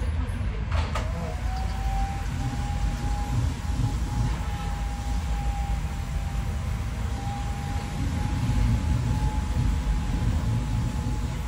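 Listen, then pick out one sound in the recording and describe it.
A vacuum cleaner hums steadily with a high whine.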